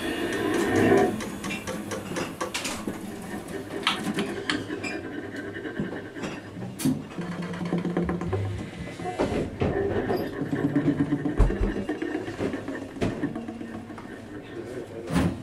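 A double bass is plucked.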